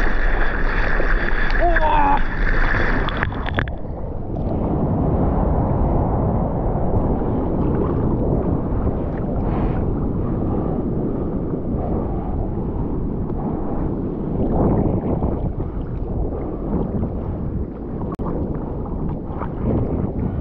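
Water sloshes and splashes around a surfboard close by.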